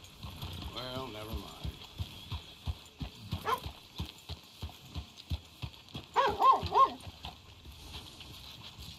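A horse's hooves clop steadily on a dirt road.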